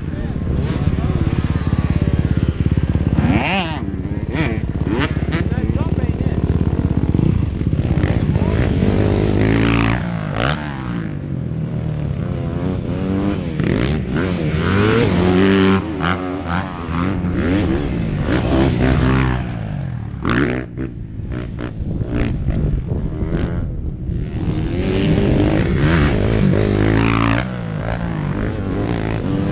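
A dirt bike engine revs and whines up and down in pitch.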